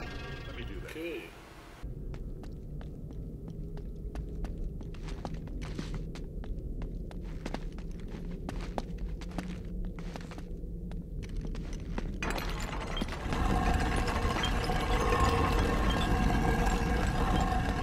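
Footsteps tread on a stone floor.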